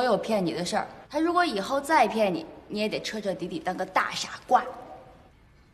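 A young woman speaks close by, scolding with animation.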